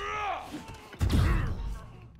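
Heavy punches land with dull thuds.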